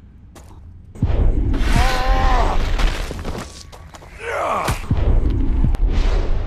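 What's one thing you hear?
Bodies scuffle and thud in a rough struggle.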